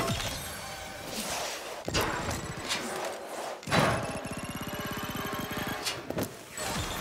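Skis grind along a metal rail.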